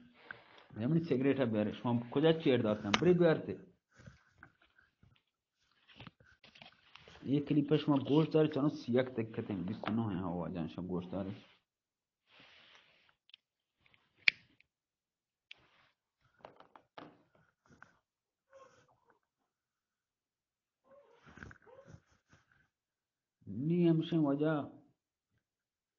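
A man sings in a drawn-out, wavering voice close to a microphone.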